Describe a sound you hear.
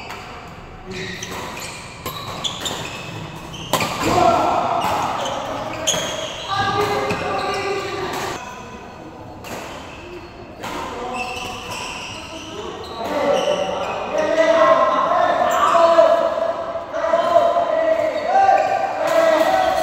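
Men talk and call out across the hall.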